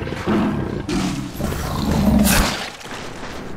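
Big cats growl and snarl as they fight.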